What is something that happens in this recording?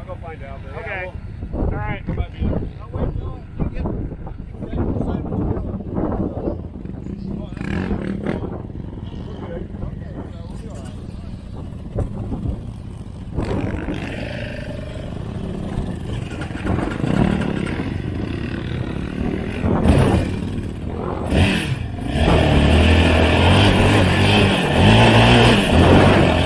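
Quad bike engines rumble and rev nearby outdoors.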